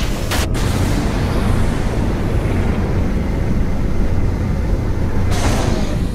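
Jet thrusters roar steadily.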